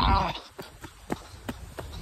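Footsteps crunch on a gravel path.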